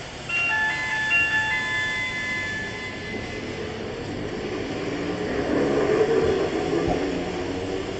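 A tram rolls past close by, rumbling loudly.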